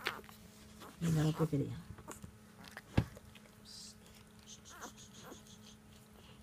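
Newborn puppies squeak and whimper close by.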